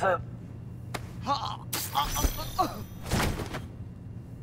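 A man gasps and grunts while being choked.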